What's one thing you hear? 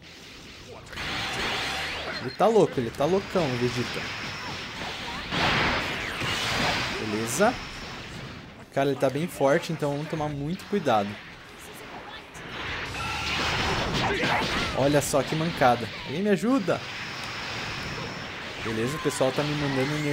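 Energy blasts whoosh and roar in bursts.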